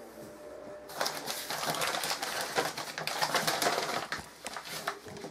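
A cloth towel rustles as it is spread out.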